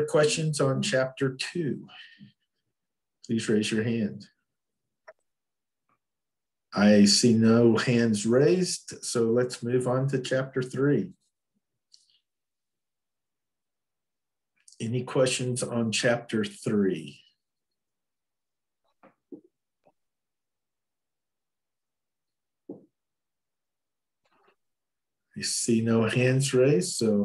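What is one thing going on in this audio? An older man speaks calmly in pauses over an online call.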